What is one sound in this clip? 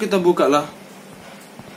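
A young man speaks loudly and animatedly into a close microphone.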